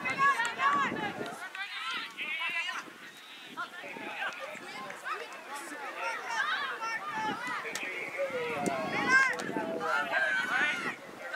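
Young players shout to each other from across an open field.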